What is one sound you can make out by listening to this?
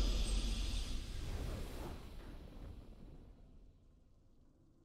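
A triumphant game fanfare rings out and slowly fades away.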